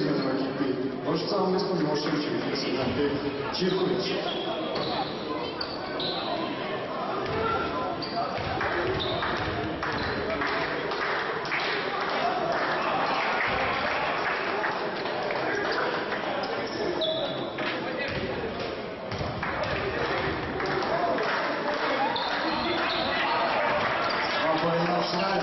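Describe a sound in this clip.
Spectators murmur and call out in an echoing hall.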